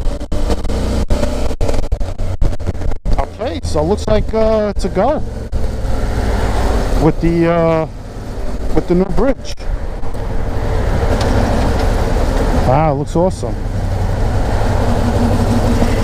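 Traffic drives past on a road with a steady rumble.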